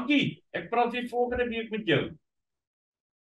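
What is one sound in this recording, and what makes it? A middle-aged man talks with animation through an online call.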